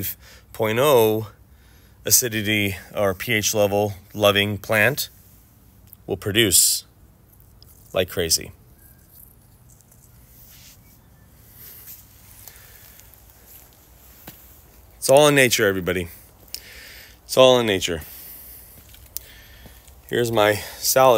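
A man talks calmly and close to a microphone, in short bursts with pauses.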